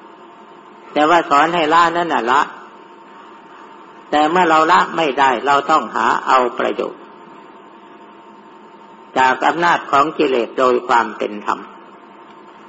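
An elderly man speaks calmly in short phrases, with pauses between them.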